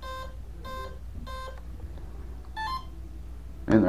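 A model plane's electronics beep in short, even tones.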